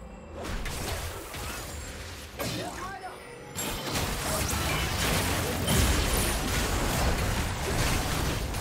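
Magic spells whoosh and crackle in a busy fantasy battle.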